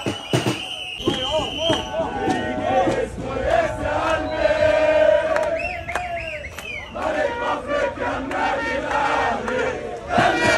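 Men shout and cheer close by.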